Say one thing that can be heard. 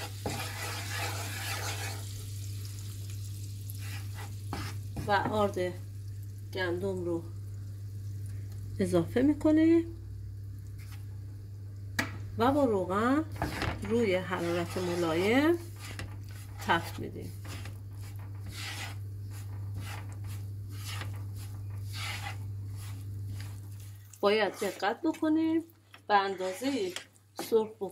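A wooden spoon scrapes and stirs in a frying pan.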